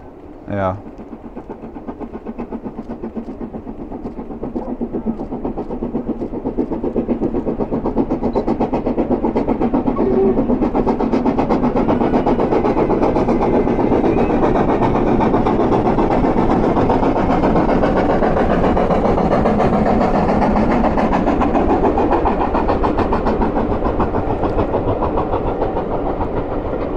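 A steam locomotive chuffs in a steady rhythm, growing louder as it approaches.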